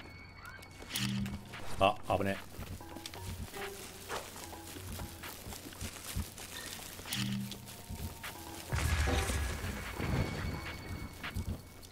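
A sword swishes and strikes during a fight.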